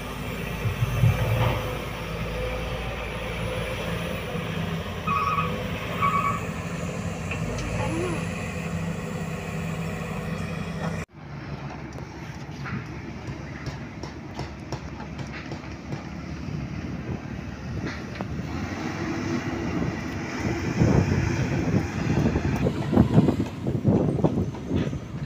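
A diesel excavator engine rumbles steadily.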